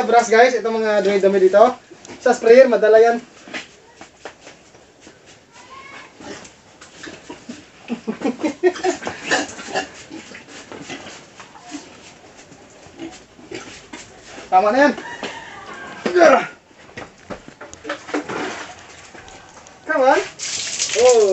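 Pigs squeal loudly in short bursts.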